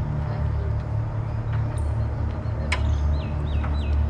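A car bonnet clicks open.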